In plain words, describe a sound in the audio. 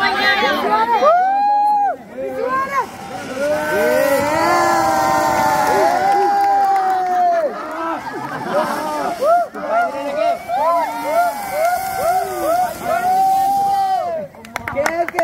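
Fireworks fountains hiss and crackle.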